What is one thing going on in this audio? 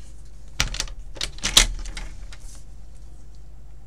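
Paper rustles and taps against a plastic trimmer.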